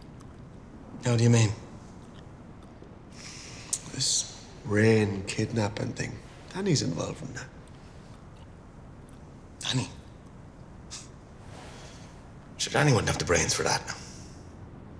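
A second man answers in a low, calm voice, close by.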